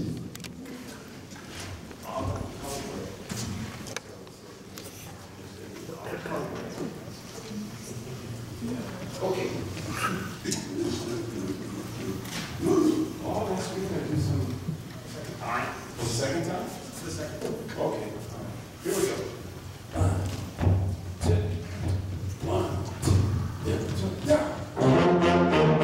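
An elderly man talks with animation in a large room that echoes.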